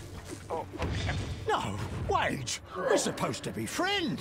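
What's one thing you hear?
A magic spell bursts with a bright whoosh.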